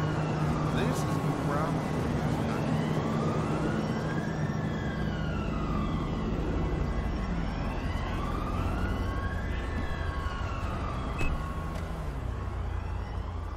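A police siren wails up and down nearby.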